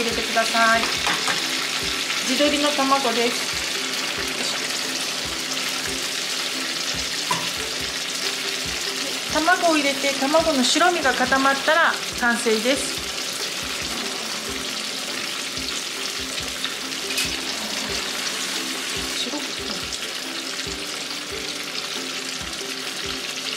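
Food sizzles and bubbles in hot oil in a pan.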